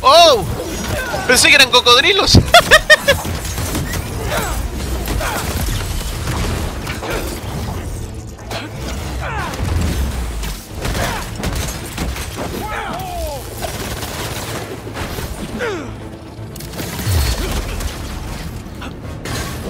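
Punches and kicks land with heavy thuds and metallic clangs.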